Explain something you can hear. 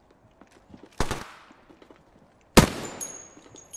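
A gun fires a few sharp, loud shots.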